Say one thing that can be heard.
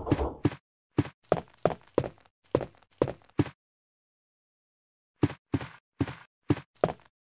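Footsteps thud on a wooden floor at a steady pace.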